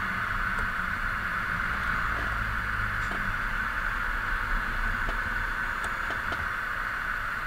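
A truck engine rumbles steadily as it drives along a road.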